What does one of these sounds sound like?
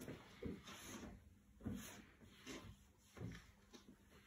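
A wooden board knocks lightly as a man handles it.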